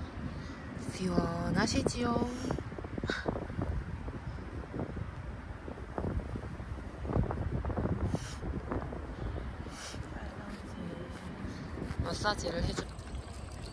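A young woman talks softly nearby.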